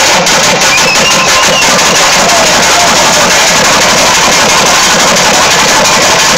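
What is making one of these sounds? Drums beat loudly and fast, close by.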